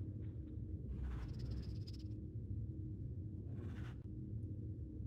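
Magic spell effects shimmer and chime in bursts.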